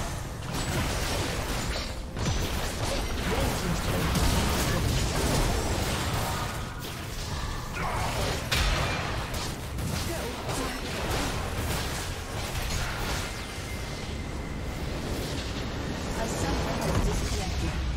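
Spells and blows crackle and boom in a video game battle.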